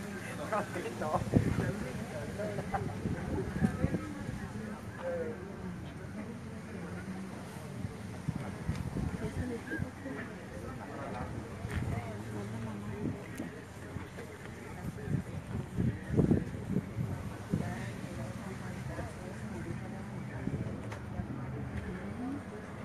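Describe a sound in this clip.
Several women and men talk at once nearby, outdoors.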